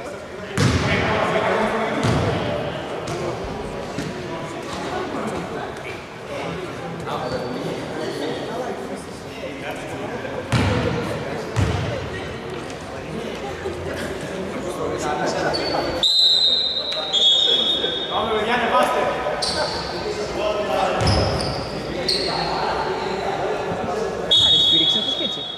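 Men call out to each other during play.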